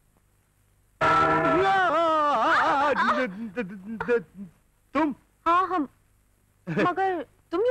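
A man sings loudly and with feeling, close by.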